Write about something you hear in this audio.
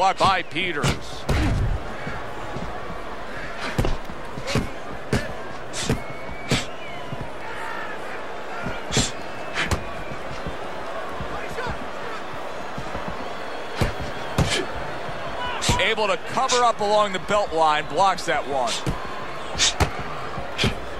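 Gloves thud sharply as boxers land punches.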